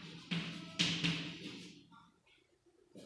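Chalk taps and scrapes on a chalkboard.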